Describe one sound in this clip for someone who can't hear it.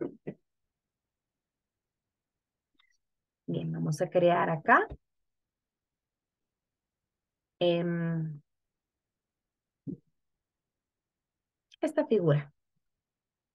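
A young woman speaks calmly into a microphone, in short bursts with pauses.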